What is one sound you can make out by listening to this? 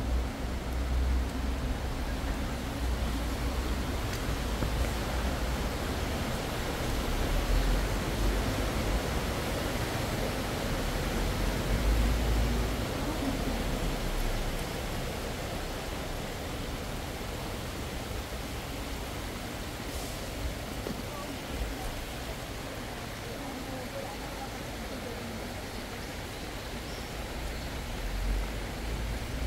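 Footsteps splash on a wet path.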